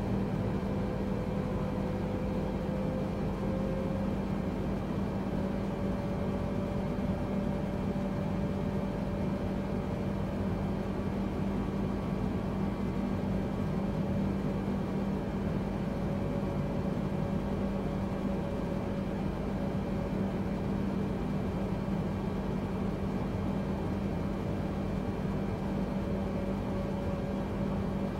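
Jet engines drone steadily with a low hum.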